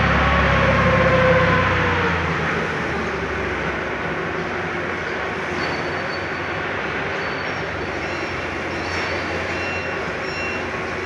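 A forklift engine rumbles nearby, then quiets down.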